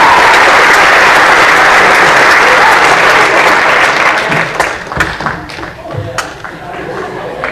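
An audience applauds loudly in a large hall and then dies away.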